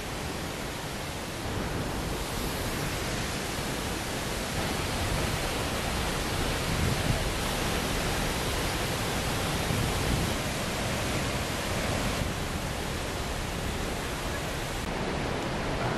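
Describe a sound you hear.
A waterfall roars steadily, pouring into a pool.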